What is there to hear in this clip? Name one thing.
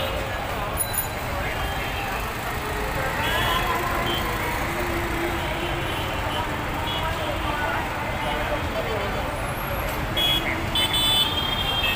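Motorised rickshaw engines putter and hum steadily along a busy street outdoors.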